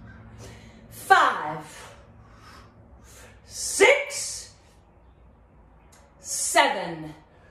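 A woman speaks in short, lively bursts close by.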